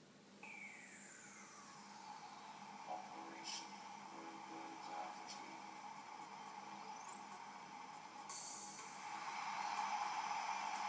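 Game music and sound effects play from a handheld console's small speaker.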